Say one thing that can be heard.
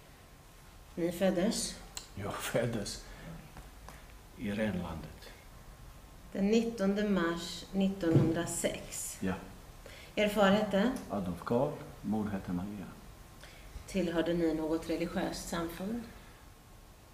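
A woman speaks calmly and clearly close by, with pauses.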